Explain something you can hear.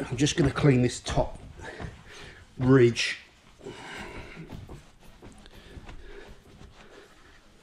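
A cloth rubs and squeaks across a window.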